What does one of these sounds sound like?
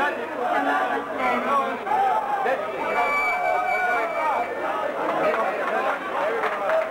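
A crowd of men and women talk over one another.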